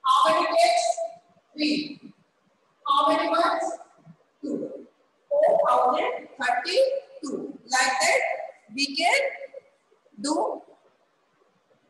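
A woman speaks clearly and calmly, close to a microphone, as if teaching.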